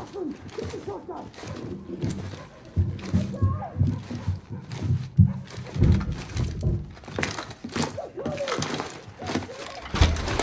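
Boots thud on wooden stairs in steady footsteps.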